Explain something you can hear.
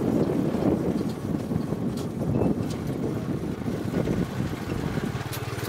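A small motor vehicle's engine rumbles steadily as it drives along.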